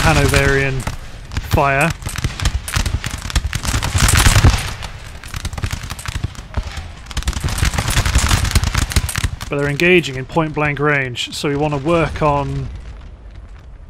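Muskets fire in rapid, crackling volleys.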